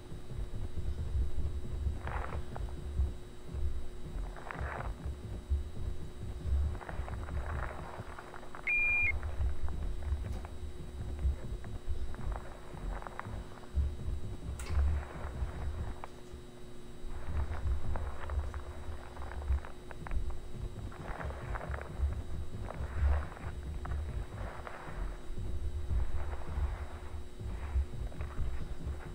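Fluorescent lights hum with a steady electric buzz.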